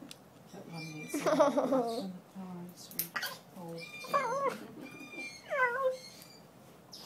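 A parrot squawks and whistles loudly.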